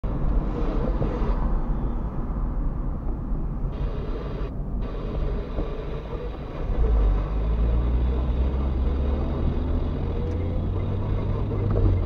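A car engine hums steadily, heard from inside the car.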